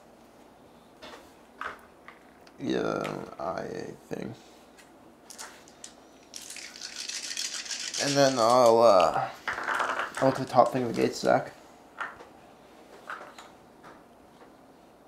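Game pieces click on a board.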